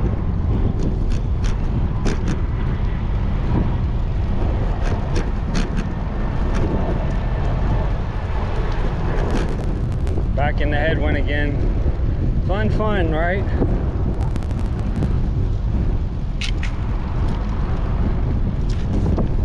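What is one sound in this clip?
Wind rumbles and buffets loudly against the microphone.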